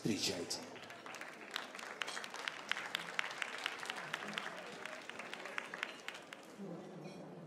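An audience claps along in a steady rhythm in a large echoing hall.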